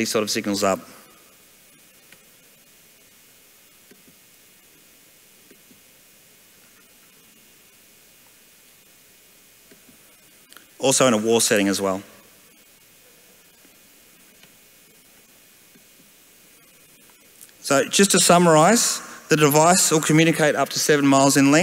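A man speaks into a microphone over loudspeakers, with long pauses.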